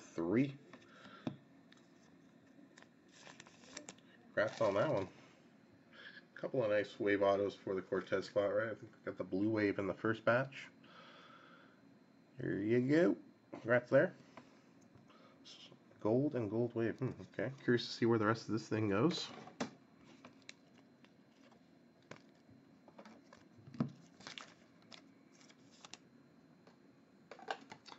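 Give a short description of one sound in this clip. Foil card wrappers crinkle and rustle.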